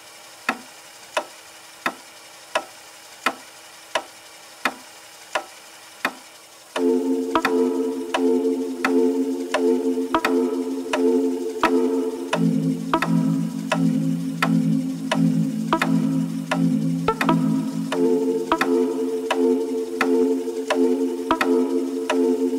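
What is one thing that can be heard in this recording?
Instrumental music plays with a steady ticking beat, swelling into a full, loud sound after a few quiet seconds.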